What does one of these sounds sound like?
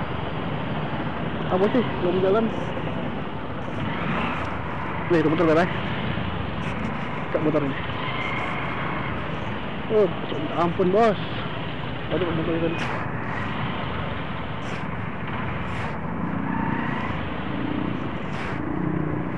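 Many motorbike engines idle and rumble nearby.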